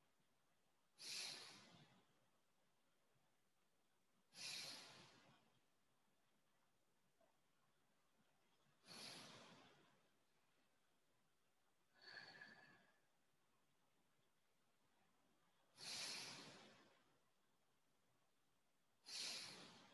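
A man breathes out deeply and slowly, again and again.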